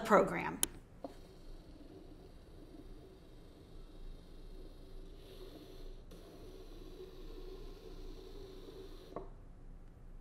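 A small toy robot whirs softly as it rolls.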